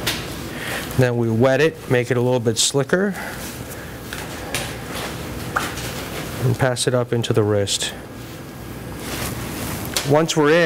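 A man speaks calmly from close by.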